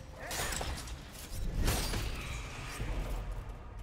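A heavy blow lands with a sharp, crackling burst.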